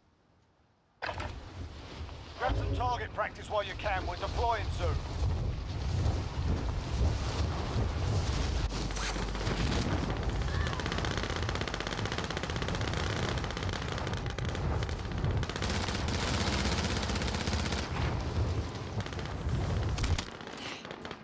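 Wind rushes loudly past during a fast fall through the air.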